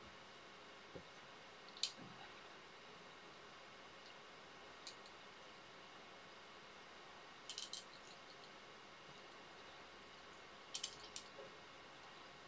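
Small metal tools click and tap softly close by.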